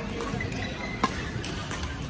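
A badminton racket strikes a shuttlecock sharply in a large echoing hall.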